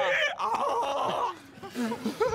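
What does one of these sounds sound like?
A man shouts loudly into a microphone.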